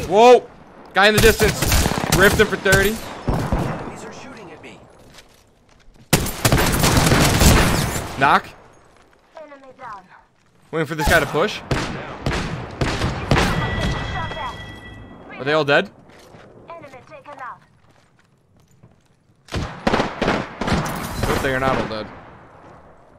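Rapid gunfire bursts loudly in a video game.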